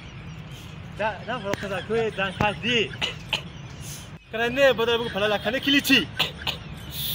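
A man speaks loudly and animatedly close by, outdoors.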